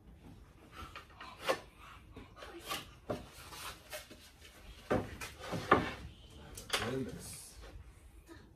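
Pieces of wood knock and clatter on a workbench.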